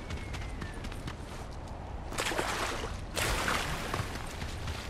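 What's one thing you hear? Water splashes around running feet.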